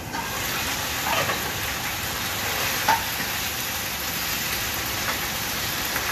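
A metal spoon clinks against a cooking pot.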